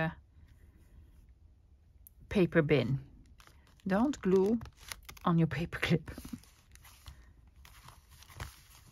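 Paper rustles and slides softly under hands.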